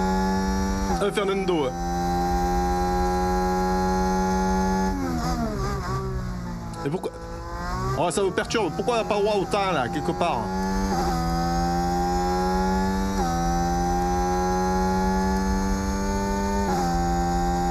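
A racing car engine shifts gears with sudden jumps in pitch.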